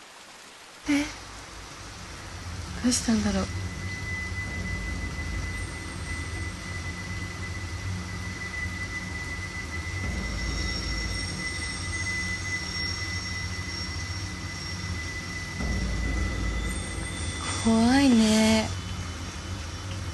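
Rain falls.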